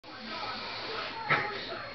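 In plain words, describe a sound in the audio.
A young man sniffs hard, close by.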